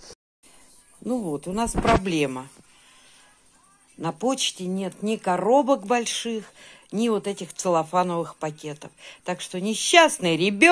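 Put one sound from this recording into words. A boy talks nearby with animation.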